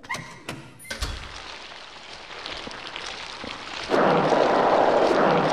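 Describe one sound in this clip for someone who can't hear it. Water drips and trickles steadily.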